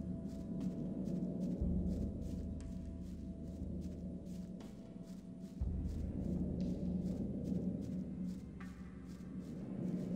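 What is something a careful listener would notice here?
Heavy footsteps crunch steadily on a dirt floor.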